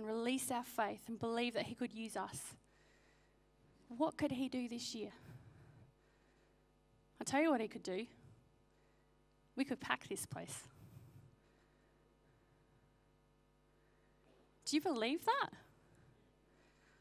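A woman speaks calmly into a microphone through a loudspeaker in a large room, pausing between phrases.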